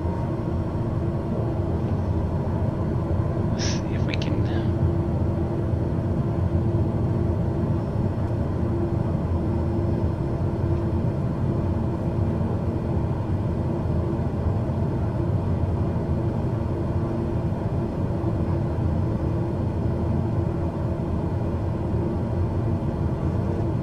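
Jet engines hum with a steady low roar.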